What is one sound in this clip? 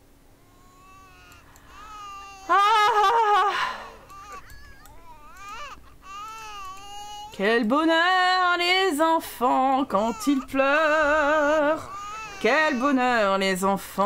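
Game characters babble in a sing-song gibberish.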